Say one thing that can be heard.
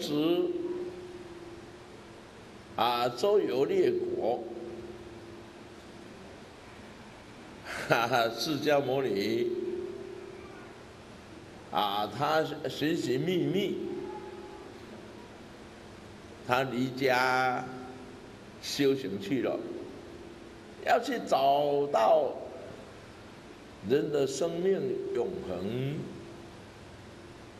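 A middle-aged man speaks with animation in short bursts into a microphone, with pauses between.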